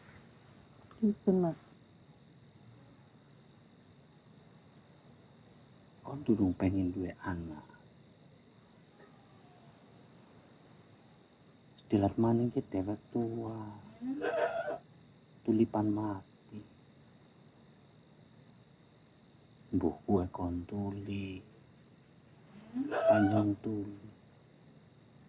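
A young man speaks quietly and close by.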